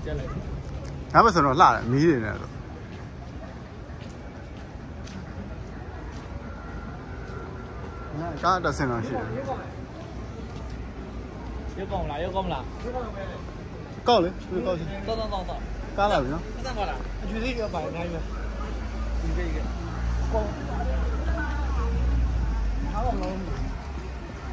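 Men and women chat nearby as they walk along a street.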